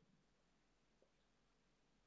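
A computer mouse clicks softly.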